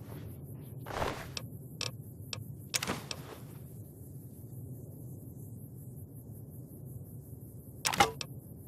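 A menu clicks sharply a few times.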